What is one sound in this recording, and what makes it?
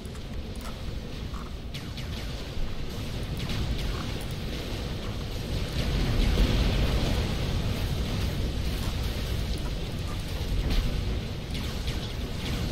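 Laser weapons zap and crackle over a low, steady rumble.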